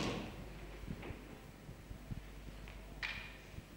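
Footsteps thud softly on a wooden stage floor.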